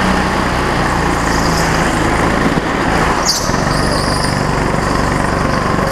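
A go-kart engine buzzes loudly and steadily up close.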